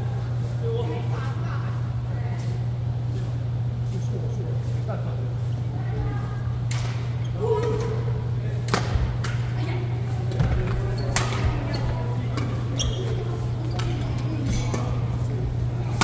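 Shuttlecocks are struck with rackets, with sharp pops that echo through a large hall.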